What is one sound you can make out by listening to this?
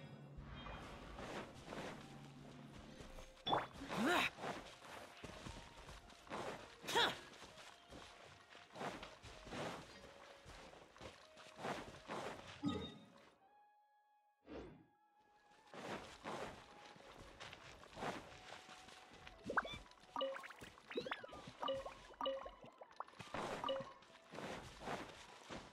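Footsteps run quickly over grass and earth.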